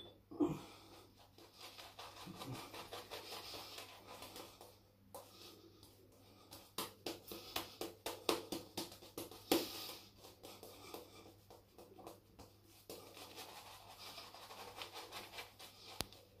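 A shaving brush swishes lather across stubble.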